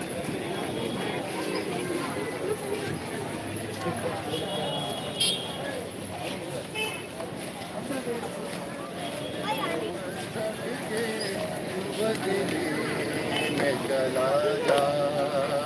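A crowd of men chatters and calls out nearby, outdoors.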